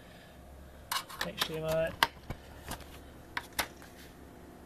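Plastic parts knock and click close by.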